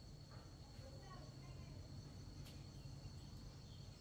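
A woman walks barefoot across a wooden floor.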